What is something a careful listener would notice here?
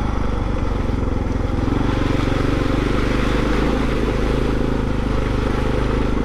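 Water splashes under motorbike tyres.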